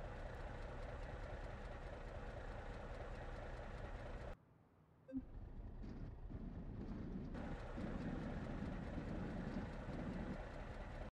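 A truck engine idles with a low steady rumble.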